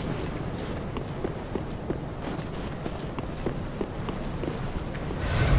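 Armoured footsteps clatter quickly on stone.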